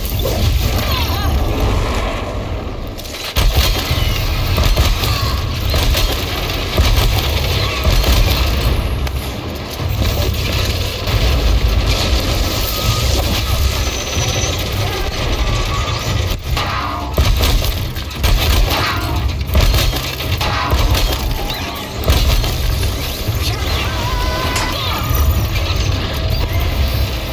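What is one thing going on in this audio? A huge mechanical beast roars and clanks as it stomps about.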